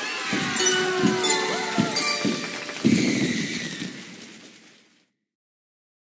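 A bright victory jingle plays and fades out.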